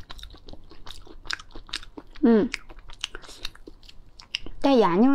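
Crustacean shells crack and crunch as they are pulled apart by hand.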